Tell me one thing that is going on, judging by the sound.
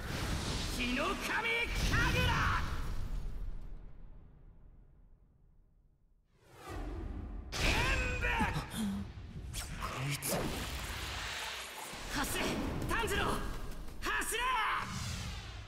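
A young man shouts fiercely with strain.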